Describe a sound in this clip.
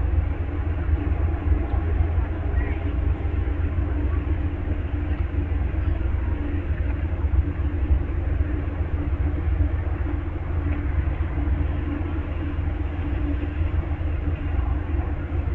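A stopped passenger train's engine idles with a steady low rumble.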